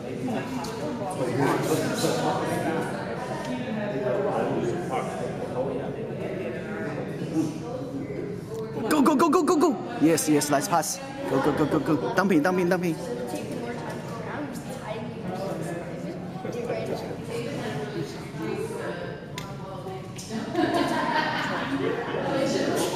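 Spectators chatter and call out around the rink, echoing in a large hall.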